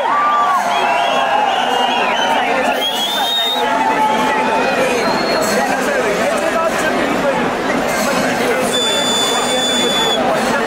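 A large outdoor crowd cheers and whistles loudly throughout.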